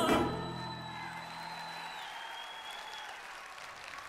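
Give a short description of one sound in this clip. An accordion plays a sustained chord that fades away.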